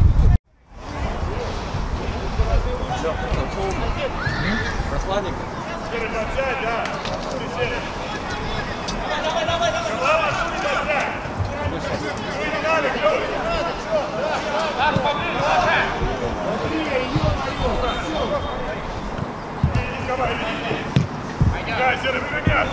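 Men shout and call out to each other on an outdoor pitch.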